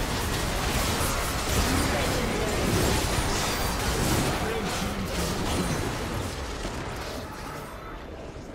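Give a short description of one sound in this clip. Spell effects and combat blasts crackle and whoosh in a video game battle.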